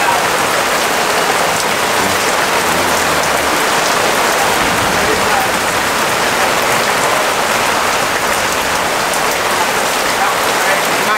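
Strong wind blows steadily outdoors and rustles the trees.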